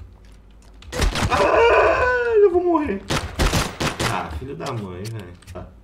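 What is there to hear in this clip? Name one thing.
A young man shouts excitedly through a headset microphone.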